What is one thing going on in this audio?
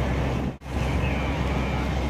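Burning grass crackles.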